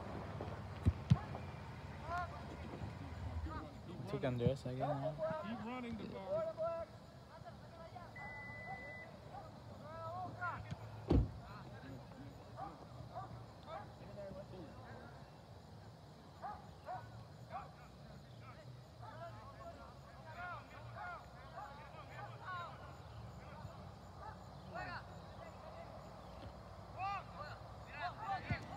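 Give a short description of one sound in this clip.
Young players call and shout in the distance across an open field.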